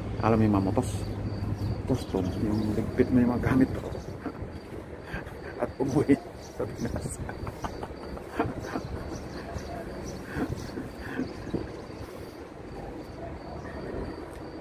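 A middle-aged man speaks calmly and close by, his voice muffled by a face mask.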